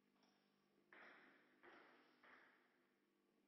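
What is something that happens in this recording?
A table tennis ball bounces on a table and a bat.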